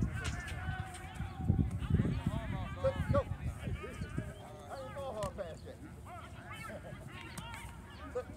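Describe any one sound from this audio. A football smacks into a player's hands.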